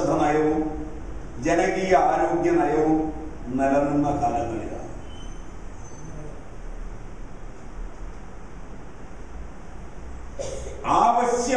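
An elderly man speaks with animation through a microphone, pausing between phrases.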